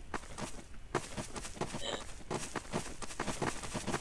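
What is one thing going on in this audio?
Footsteps tread quickly on soft ground.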